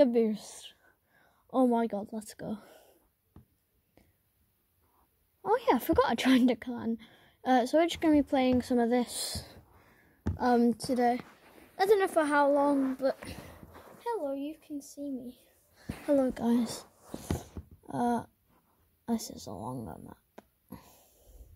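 A child speaks with animation close by.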